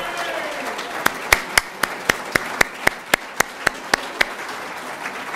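An elderly man claps his hands in a slow, steady rhythm.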